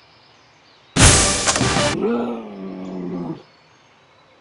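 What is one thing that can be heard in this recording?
A bright game reward jingle bursts out and rings briefly.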